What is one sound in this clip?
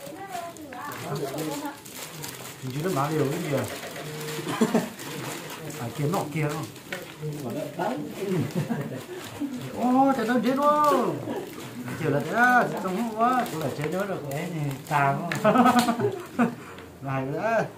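Meat squelches as hands knead it in a bowl.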